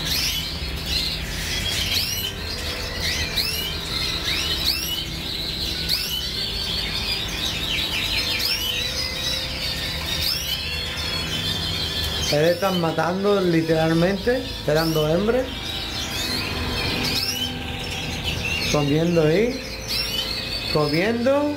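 Many small birds chirp and twitter nearby.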